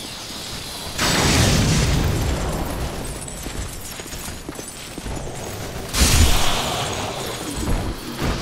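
Thunder bursts with a loud crackling blast.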